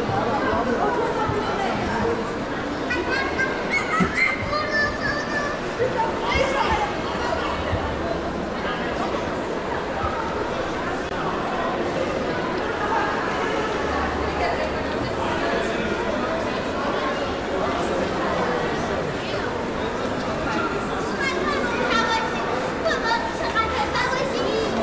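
Footsteps of many people tap on a hard floor.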